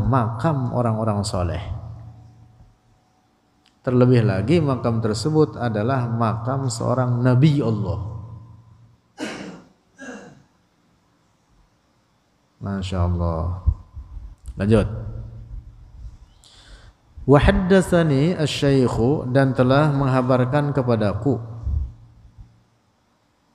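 A young man chants melodically into a close microphone, in phrases with pauses.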